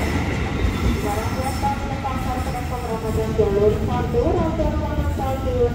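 A second train rolls in and its brakes squeal.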